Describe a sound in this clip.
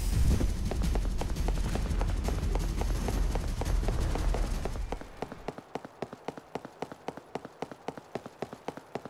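Footsteps tap steadily on stone paving.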